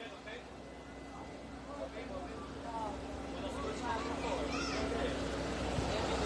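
A crowd of men and women chatter outdoors, growing louder and closer.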